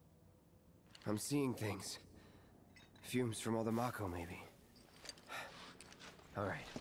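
A young man speaks quietly and calmly.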